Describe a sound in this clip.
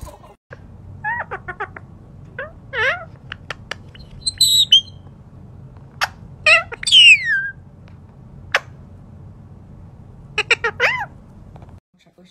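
A parrot squawks and chatters loudly close by.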